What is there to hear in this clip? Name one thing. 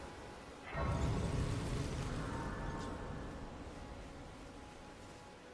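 A shimmering magical chime swells and slowly fades.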